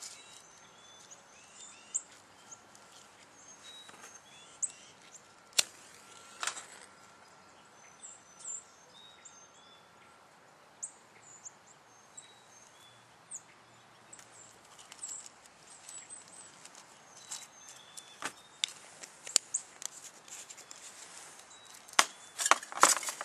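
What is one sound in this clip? Small metal objects click and clink in a man's hands.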